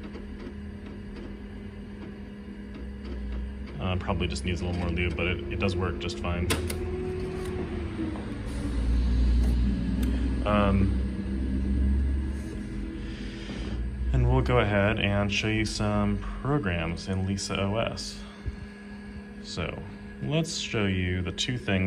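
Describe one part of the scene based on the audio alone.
A computer hums steadily.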